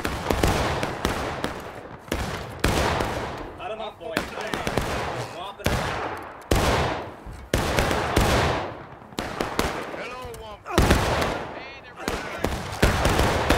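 Rifle shots crack and boom one after another, echoing through the woods.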